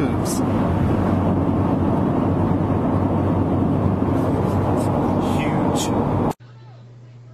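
A car drives along a road with a steady rumble.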